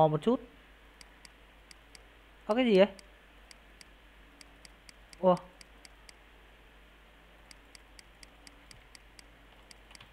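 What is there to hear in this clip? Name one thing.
Short electronic game blips sound in quick succession.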